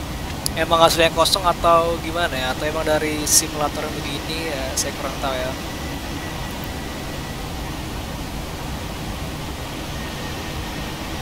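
A jet airliner's engines roar steadily in flight.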